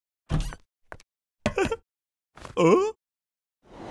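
A woman speaks with surprise in a cartoon voice.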